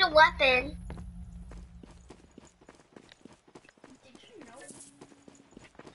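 Footsteps run quickly over dry grass.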